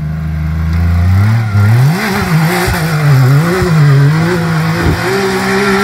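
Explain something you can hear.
An off-road buggy engine roars loudly as the buggy climbs a muddy hill.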